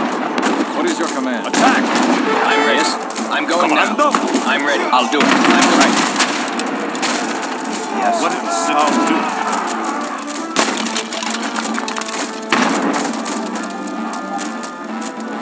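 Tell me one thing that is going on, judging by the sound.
Cannons boom and explosions burst in a battle.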